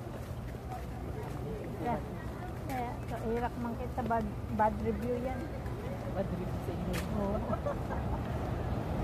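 An elderly woman talks calmly nearby.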